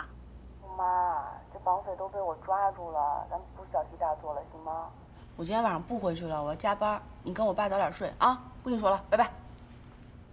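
A young woman talks on a phone, calmly.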